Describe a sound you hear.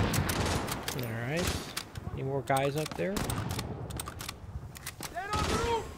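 A rifle bolt clicks and clacks as it is reloaded.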